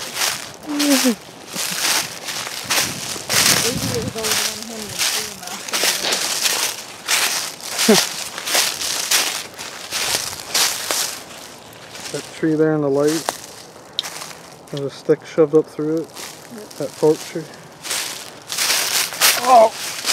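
Footsteps crunch through dry leaves at a steady walking pace.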